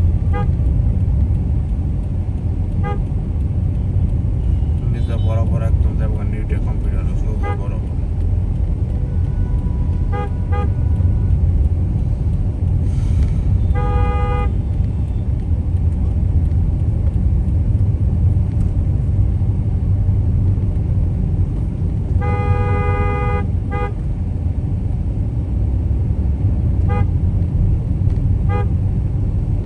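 A car engine rumbles steadily from inside a moving car.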